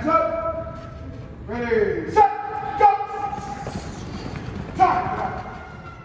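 A man shouts encouragement loudly nearby.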